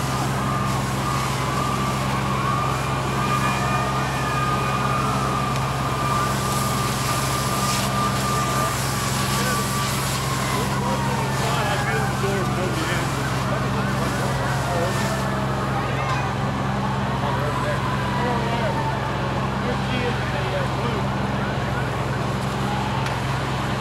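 Water from a fire hose hisses and sprays onto a burning car.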